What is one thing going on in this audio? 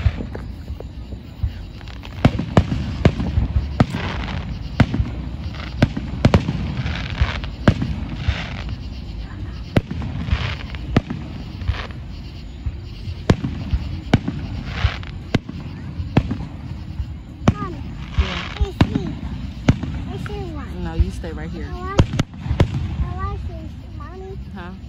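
Distant aerial firework shells boom and crackle across the sky.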